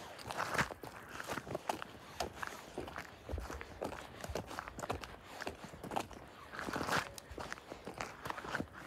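Footsteps crunch and scrape on icy snow at a steady walking pace.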